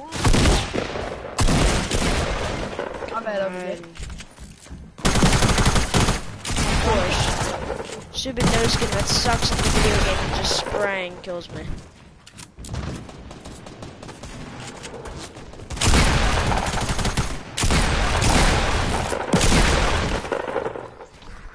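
Gunshots crack in loud, quick bursts.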